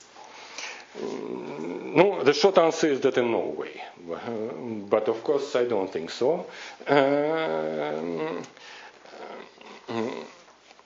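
A man lectures calmly through a microphone in a large room.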